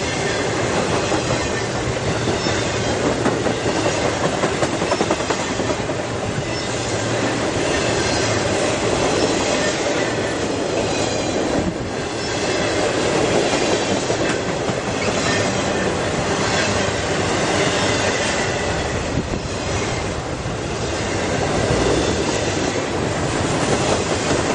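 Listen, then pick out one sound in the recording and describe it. A freight train rumbles past close by, loud and steady.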